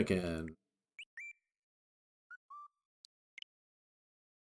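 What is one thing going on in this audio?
Short electronic menu blips sound a few times.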